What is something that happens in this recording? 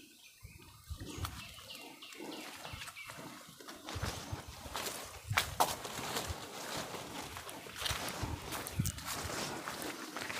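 Footsteps crunch and rustle through dry leaves and undergrowth close by.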